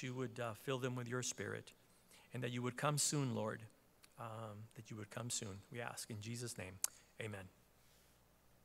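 A middle-aged man reads aloud calmly into a microphone.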